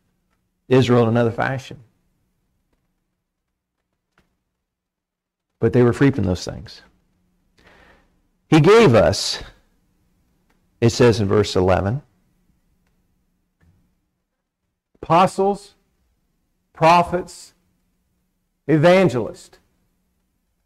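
A middle-aged man speaks calmly into a microphone in short phrases with pauses, heard through a loudspeaker.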